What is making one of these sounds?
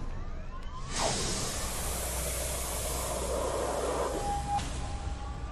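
A burst of smoke whooshes loudly.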